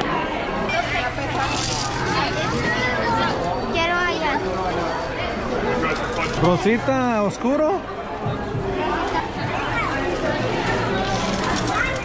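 Small candies rattle as they pour into a plastic cup.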